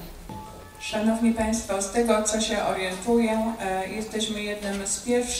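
A middle-aged woman speaks calmly into a microphone in a large hall.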